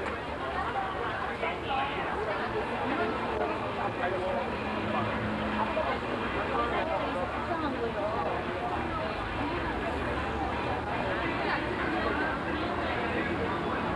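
A crowd of men and women chatters all around, outdoors.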